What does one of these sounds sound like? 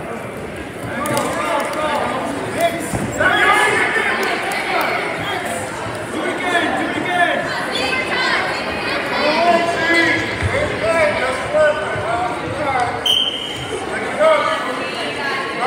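Spectators shout and cheer loudly from close by.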